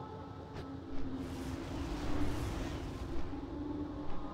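Large wings beat with a whooshing rush of air.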